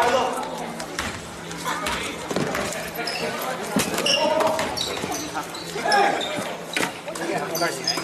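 Young men call out, echoing in a large hall.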